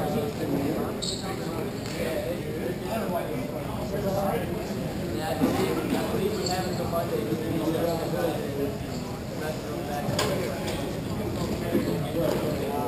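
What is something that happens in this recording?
Hockey sticks clack sharply now and then.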